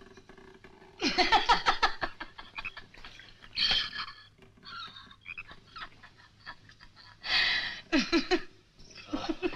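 A young woman laughs loudly, close by.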